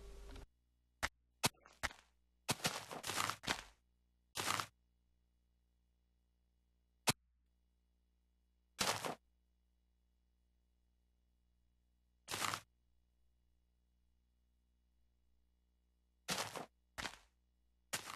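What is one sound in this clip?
Footsteps fall on grass.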